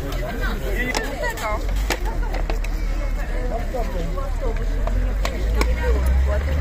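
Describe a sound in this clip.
Metal lids clank on food containers.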